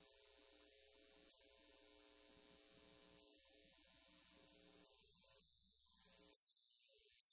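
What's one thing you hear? A man strums an acoustic guitar through loudspeakers.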